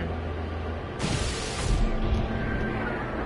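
Video game laser cannons fire in bursts.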